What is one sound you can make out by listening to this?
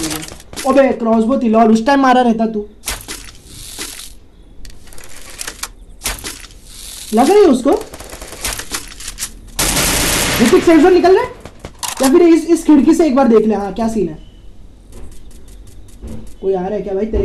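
A teenage boy talks with animation, close by.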